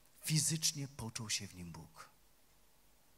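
A middle-aged man speaks calmly into a microphone, heard through loudspeakers.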